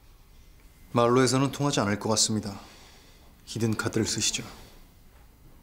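A middle-aged man speaks in a low, tense voice.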